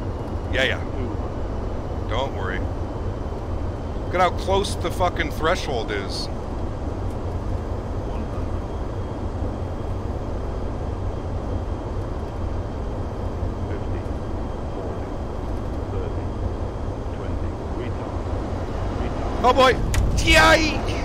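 Jet engines hum steadily.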